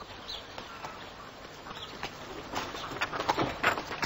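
Horse hooves clop on wet ground.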